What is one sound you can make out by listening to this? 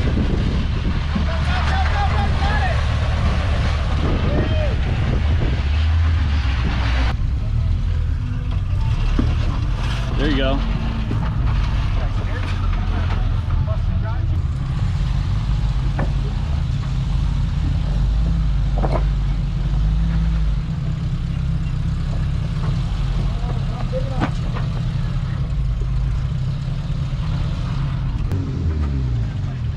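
Tyres grind and crunch on rock.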